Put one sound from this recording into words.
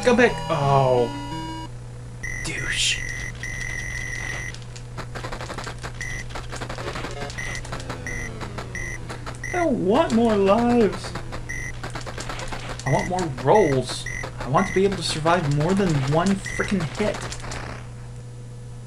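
Retro arcade game sound effects beep and buzz with rapid shooting blips.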